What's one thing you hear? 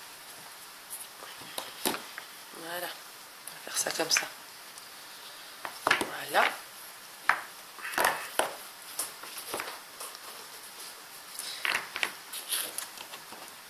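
Wooden stamp blocks clack and knock as they are set down on a table.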